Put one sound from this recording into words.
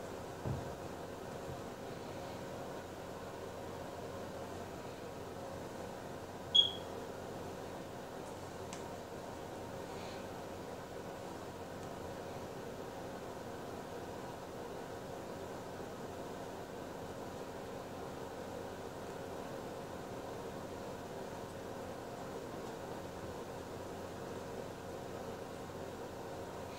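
A paintbrush brushes softly across a canvas.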